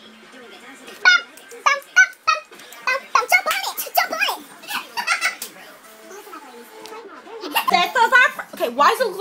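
A young woman talks and laughs with animation close to the microphone.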